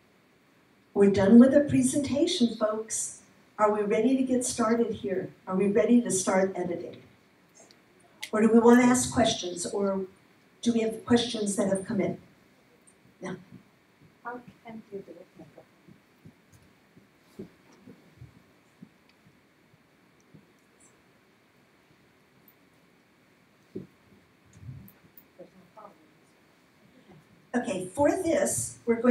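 A woman speaks with animation into a microphone, heard through loudspeakers.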